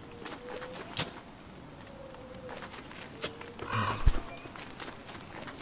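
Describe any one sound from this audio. Light footsteps patter quickly across the ground.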